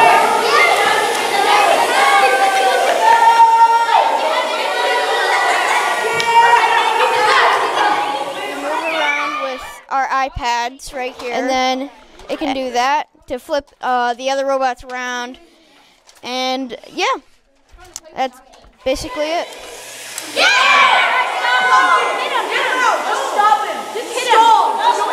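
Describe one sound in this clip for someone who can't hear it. A group of children chatter and call out.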